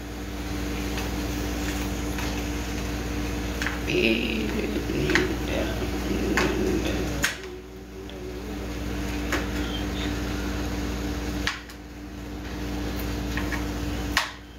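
Small objects click and knock as they are handled.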